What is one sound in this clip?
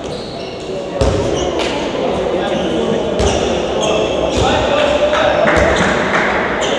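A ball bounces on the floor.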